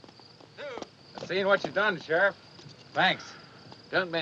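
Horse hooves clop slowly on rocky ground.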